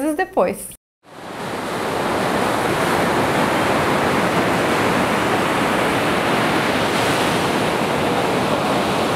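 Ocean waves wash steadily onto a beach.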